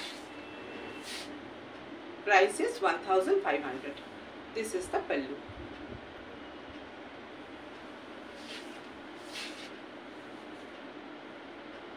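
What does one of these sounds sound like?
Fabric rustles as a woman handles a sari.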